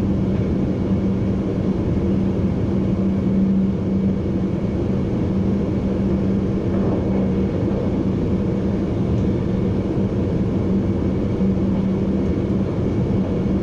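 A train rumbles steadily along the rails with a low hum.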